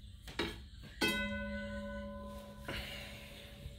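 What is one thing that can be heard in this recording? An electric bell rings loudly with a steady tone.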